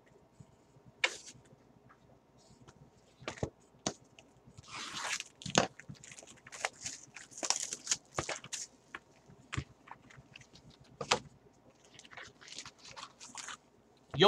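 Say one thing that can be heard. Hands handle and tap a cardboard box.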